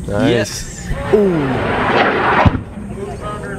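A rocket roars as it launches.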